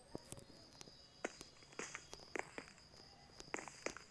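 Glass blocks are placed with a soft clink.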